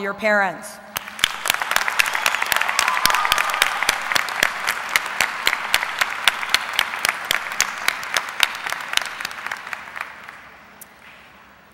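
A crowd applauds loudly, then the clapping fades.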